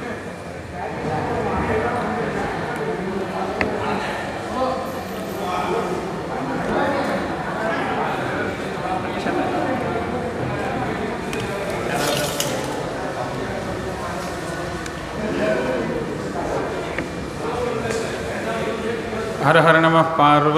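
Several men chant together in a steady rhythm through microphones.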